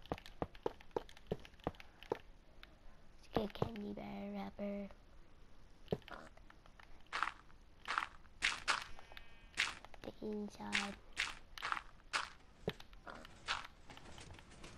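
Blocks are placed with short, soft thuds.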